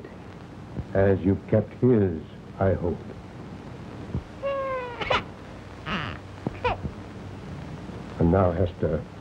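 An elderly man speaks in a low, gruff voice.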